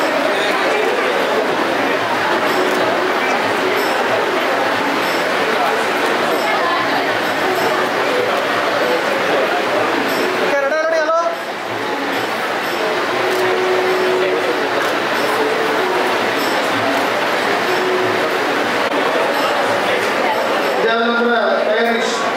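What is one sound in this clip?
A crowd of men and women chatters.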